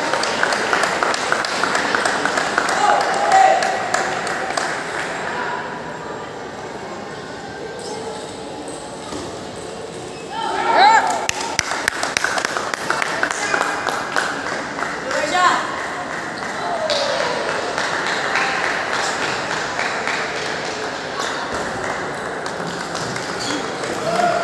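A large indoor hall echoes with the hum of many people.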